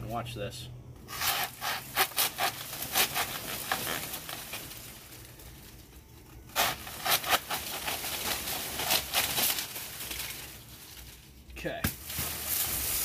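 A saw cuts through a plant stalk with rasping strokes.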